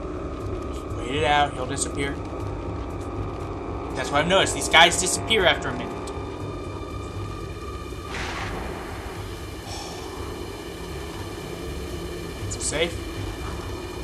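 A young man speaks into a microphone now and then, with animation.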